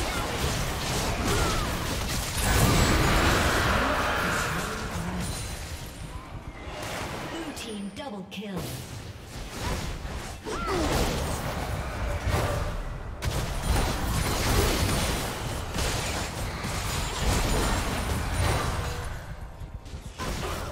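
Spell effects crackle and blast in a fast fight.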